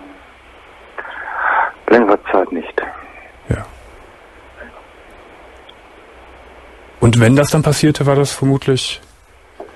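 A man speaks cheerfully into a headset microphone, close up.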